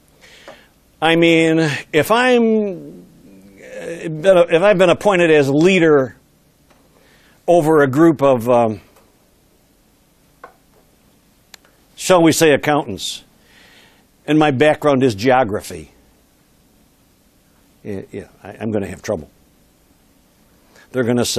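An elderly man lectures with animation, speaking close by in bursts with pauses.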